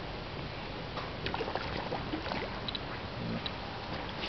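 An animal splashes at the water's surface.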